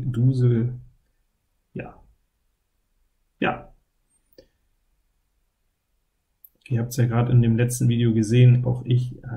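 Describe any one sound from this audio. A man talks calmly and close into a microphone, in short bursts.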